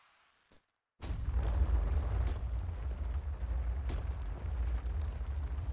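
A giant worm bursts up from the ground with a deep, heavy rumble.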